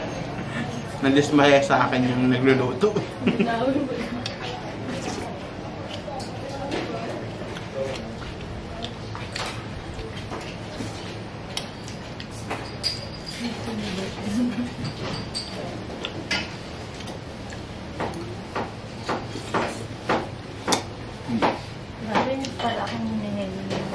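A spoon clinks against a plate.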